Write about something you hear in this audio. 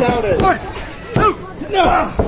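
A referee slaps the ring mat.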